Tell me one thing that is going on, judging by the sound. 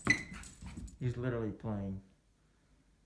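A small dog whines close by.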